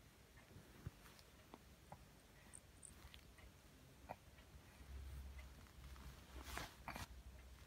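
Clothing and bedding rustle softly close by.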